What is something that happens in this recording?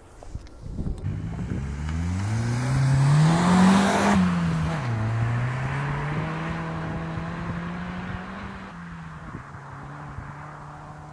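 A car engine approaches, revs as it passes close by and fades into the distance.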